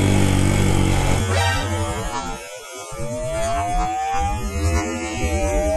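Other motorcycles drone nearby.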